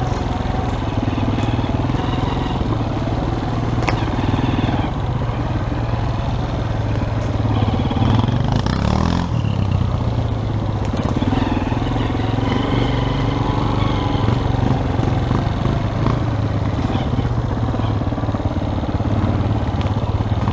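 A dirt bike engine hums loudly close by, rising and falling with the throttle.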